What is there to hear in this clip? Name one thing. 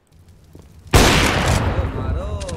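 A rifle shot cracks in a game.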